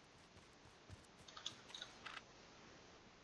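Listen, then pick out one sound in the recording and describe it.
A quick burst of clicks and rustles sounds.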